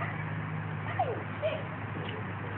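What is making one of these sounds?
A woman calls out to a dog outdoors.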